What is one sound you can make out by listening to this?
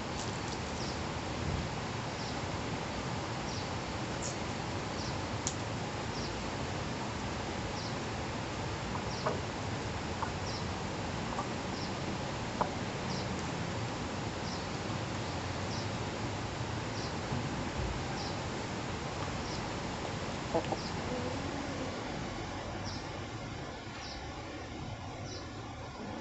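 Wind rustles the leaves of trees outdoors.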